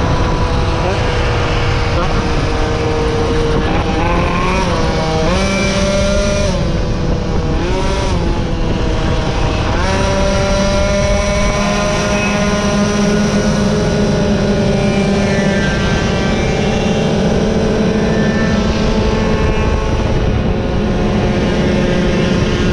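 A motorcycle engine hums and revs up and down as it rides along.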